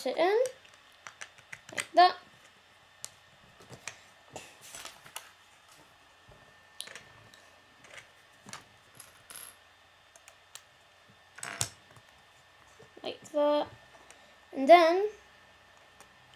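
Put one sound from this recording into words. Plastic bricks click and snap together.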